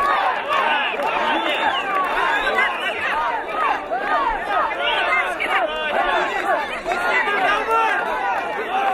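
A crowd of spectators shouts and cheers nearby, outdoors.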